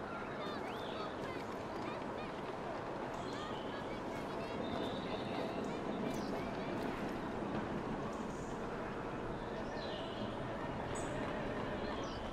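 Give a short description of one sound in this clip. Footsteps tap on stone pavement.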